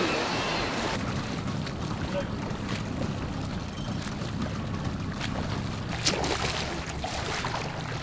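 A swimmer splashes in the water close by.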